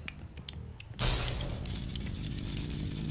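An electric charge crackles and buzzes loudly.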